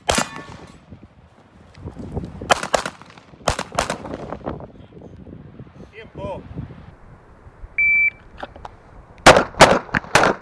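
A handgun fires sharp shots in quick bursts outdoors.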